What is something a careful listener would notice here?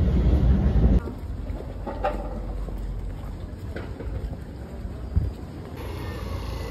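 Footsteps tap on a stone pavement.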